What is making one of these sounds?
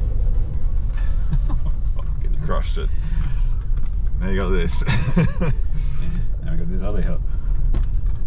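A man talks cheerfully inside a car.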